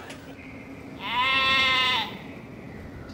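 A sheep bleats loudly nearby.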